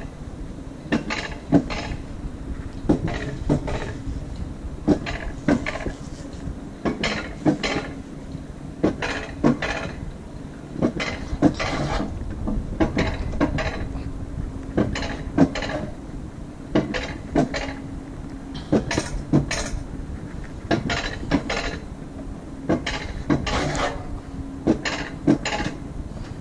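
Sled wheels clack rhythmically over track joints.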